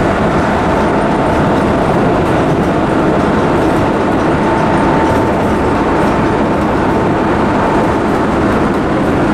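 A train rumbles loudly along the tracks.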